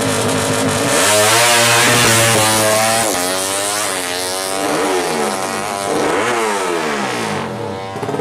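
A motorcycle races off, its engine screaming up through the gears.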